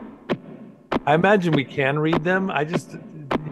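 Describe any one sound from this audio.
A man speaks with animation through a microphone on an online call.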